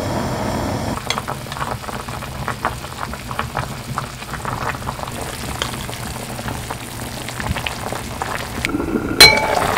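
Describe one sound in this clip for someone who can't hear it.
Broth boils, bubbling and popping steadily.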